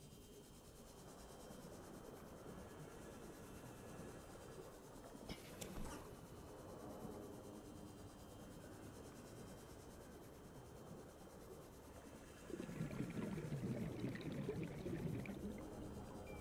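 A small underwater vehicle hums steadily as it glides through the water.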